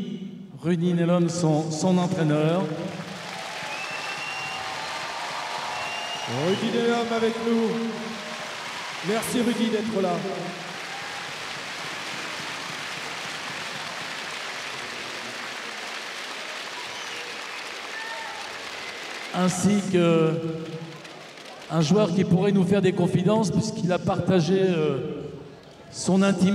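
An older man speaks through a loudspeaker in a large echoing hall.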